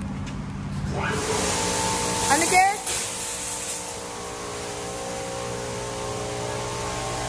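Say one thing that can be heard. Car wash machinery starts up with a whirring hum.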